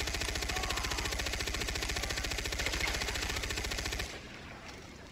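A heavy machine gun fires rapid, loud bursts.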